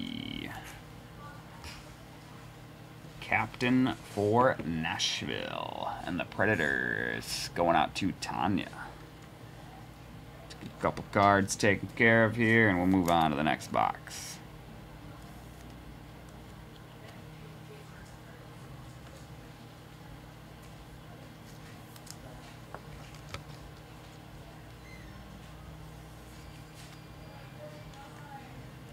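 Plastic card cases clack softly as they are handled.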